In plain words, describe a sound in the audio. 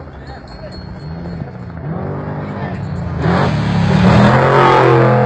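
A car engine roars closer and louder as the car speeds past.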